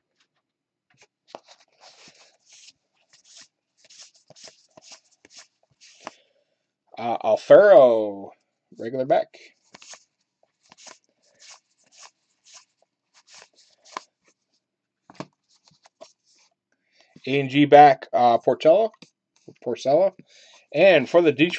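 Trading cards flick and rustle as they are flipped through by hand, close by.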